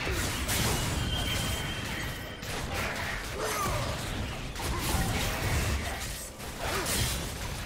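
Magic blasts and weapon strikes crackle and whoosh in a fast fight.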